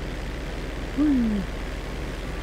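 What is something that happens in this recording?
A young man makes a short sound into a microphone.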